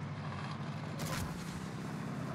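A vehicle explodes with a sharp bang.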